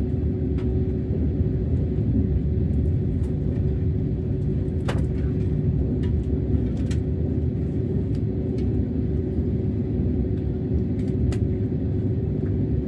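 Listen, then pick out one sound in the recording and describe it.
A train rumbles along steadily at speed.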